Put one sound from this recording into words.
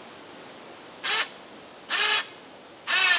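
A rope squeals loudly in short bursts as it is pulled tight.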